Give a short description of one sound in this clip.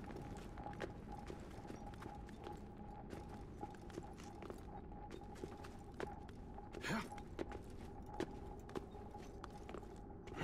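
Hands grip and scrape on stone in short knocks as someone climbs.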